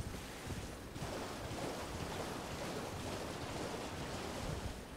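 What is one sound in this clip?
Water splashes under a galloping horse's hooves.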